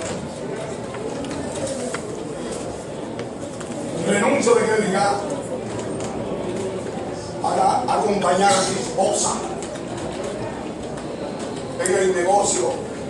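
A man speaks formally and steadily in an echoing room.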